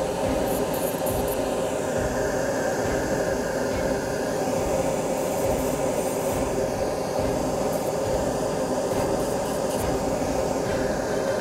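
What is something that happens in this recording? A small rotary tool whirs steadily as its spinning disc grinds.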